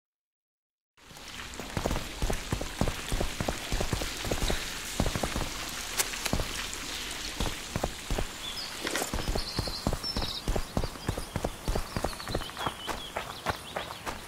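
Footsteps crunch steadily as a character walks.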